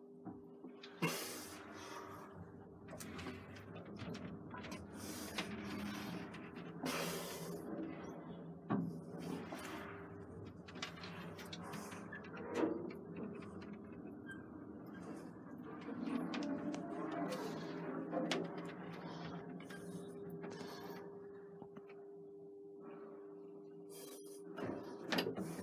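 An elevator hums steadily as it runs.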